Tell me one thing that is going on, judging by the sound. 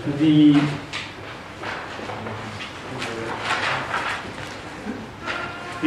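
Paper pages rustle as a young man turns them.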